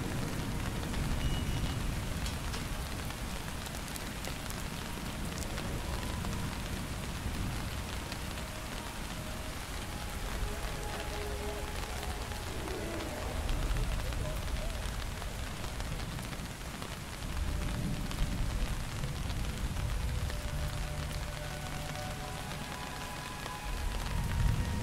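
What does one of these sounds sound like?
Wind blows steadily outdoors, rising and falling in gusts.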